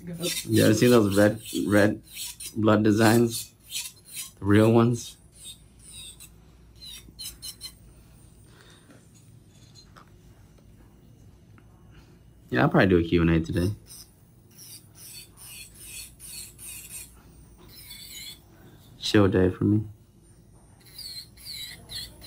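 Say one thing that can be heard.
An electric nail drill whirs as it files a fingernail.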